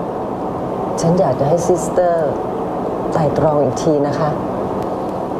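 A middle-aged woman speaks tensely nearby.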